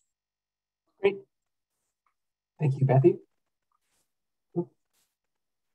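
A second woman speaks in short, halting phrases over an online call.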